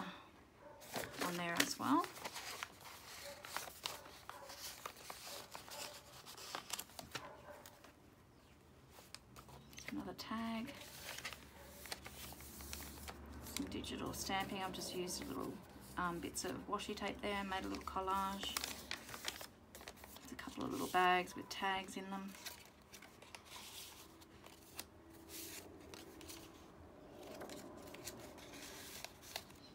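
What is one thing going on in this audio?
Paper rustles and crinkles as pages and cards are handled.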